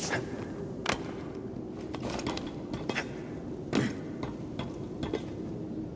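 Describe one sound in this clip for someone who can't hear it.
Hands grip and clank along a metal pole while climbing.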